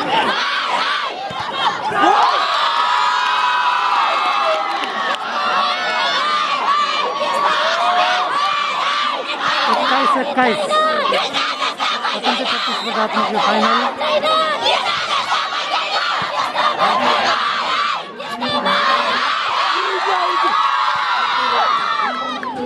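A volleyball is struck hard by hand.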